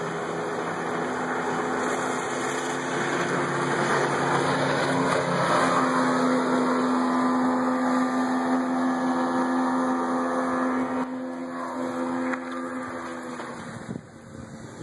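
An outboard motor drives a boat past at speed, then fades as it moves away.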